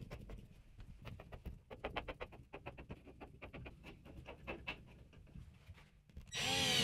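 A screwdriver creaks and clicks as a screw is turned by hand.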